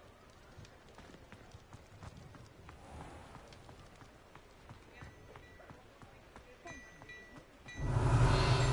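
Footsteps tap steadily on cobblestones.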